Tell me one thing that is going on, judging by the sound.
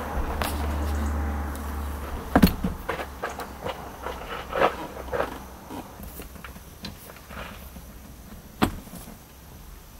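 A car seat thumps as it is lifted and set into place.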